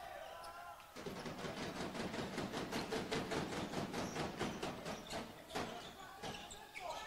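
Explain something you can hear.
A crowd of spectators cheers and claps in a large echoing hall.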